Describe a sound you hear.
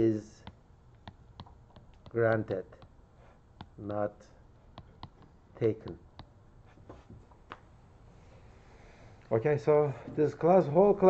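A middle-aged man speaks slowly in short phrases through a microphone.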